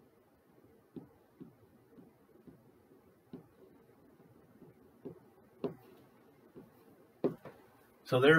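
A pen taps on a board.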